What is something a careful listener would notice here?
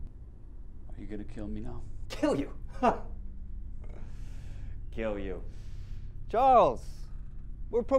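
A young man speaks calmly and with expression, close by.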